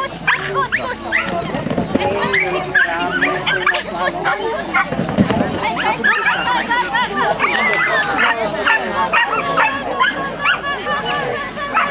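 A woman calls out excited commands to a dog outdoors.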